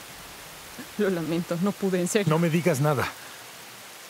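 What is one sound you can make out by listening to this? A young woman speaks softly and emotionally, close by.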